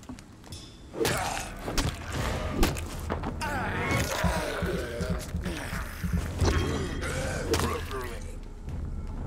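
Heavy blows land with thuds and slashes in a fight.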